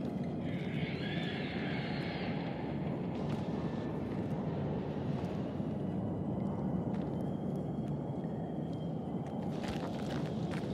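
A torch flame crackles and hisses.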